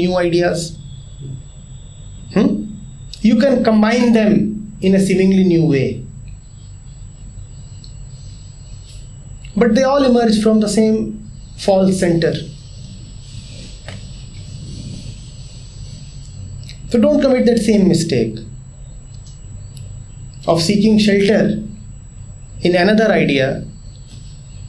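A man speaks calmly into a nearby microphone, with pauses between phrases.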